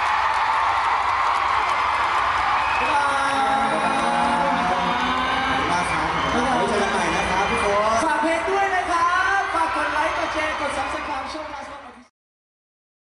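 Pop music plays loudly over loudspeakers.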